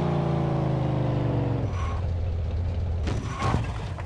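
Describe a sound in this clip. A car engine idles and slows down.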